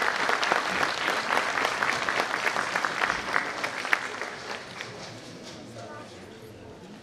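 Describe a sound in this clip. An audience applauds in a hall, and the clapping fades away.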